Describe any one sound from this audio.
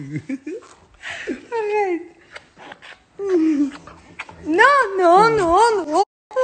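A young woman laughs heartily close by.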